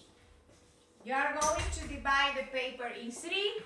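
A woman speaks animatedly close by.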